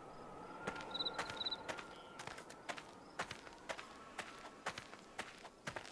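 Footsteps crunch steadily on sandy ground.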